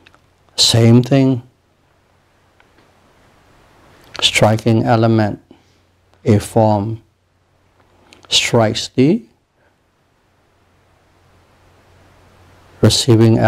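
An elderly man chants slowly and calmly into a close microphone, in short phrases with pauses.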